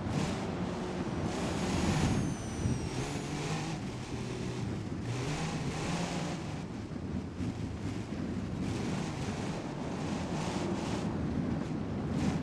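Tyres crunch and rumble over sand and dry brush.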